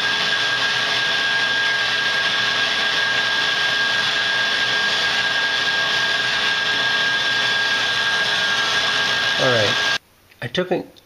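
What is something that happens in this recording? A handheld rotary tool whines steadily as it grinds metal.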